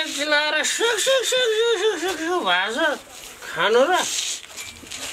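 A middle-aged man calls out loudly nearby, his voice sliding up and down.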